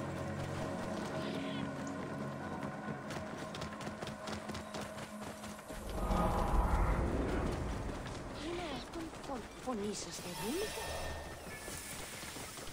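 A horse's hooves thud steadily at a gallop.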